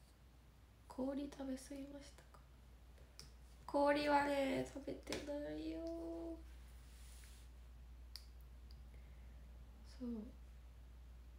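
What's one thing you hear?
A young woman speaks softly and close by, in short phrases with pauses.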